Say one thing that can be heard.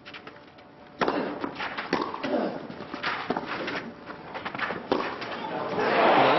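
A tennis ball is struck hard with a racket, back and forth in a rally.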